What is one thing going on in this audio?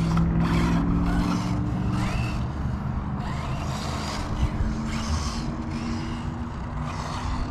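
A small electric RC car whines as it races over dirt.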